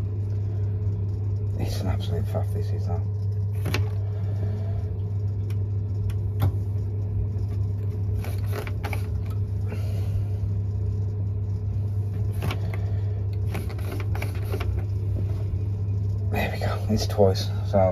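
A boiler hums steadily and low.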